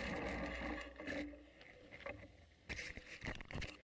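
A bicycle frame rattles and clicks over bumps.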